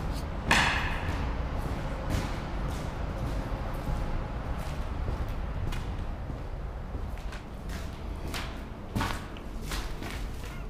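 Footsteps crunch on a debris-strewn floor.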